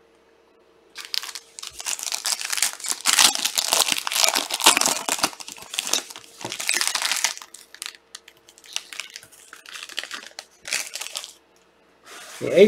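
Foil packaging crinkles and rustles as it is torn open.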